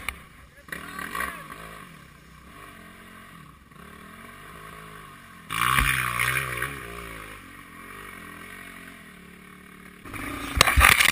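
A dirt bike engine revs and whines in the distance.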